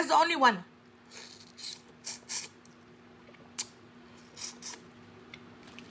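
A woman chews and slurps noisily.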